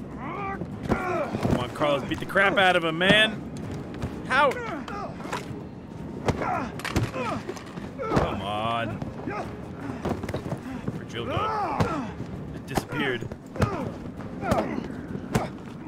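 Punches land with heavy, sudden thuds.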